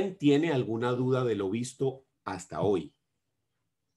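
A young man speaks calmly through a computer microphone, as on an online call.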